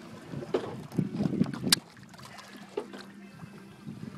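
Water splashes against the side of a boat.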